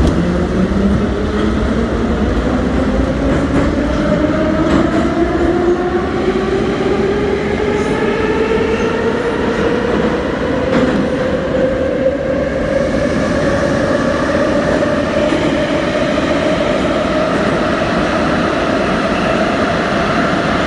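A subway train's wheels rumble loudly on the rails.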